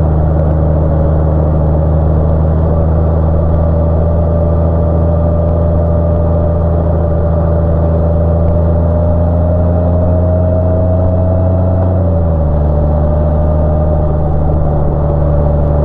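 A motorcycle engine hums steadily close by, with its pitch dropping slightly as it eases off.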